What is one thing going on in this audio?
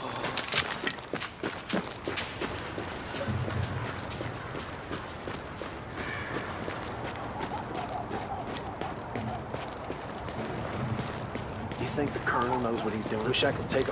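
Footsteps crunch through snow at a run.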